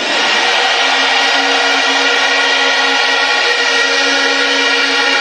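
A huge crowd cheers and roars outdoors.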